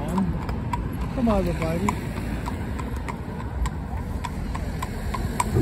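Cart wheels rumble along the road.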